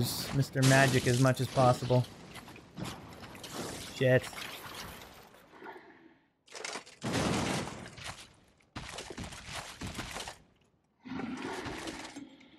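Armoured footsteps run across stone.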